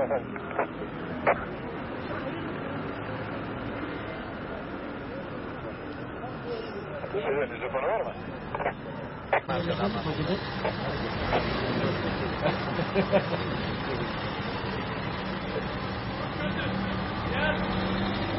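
Traffic hums steadily in the street outdoors.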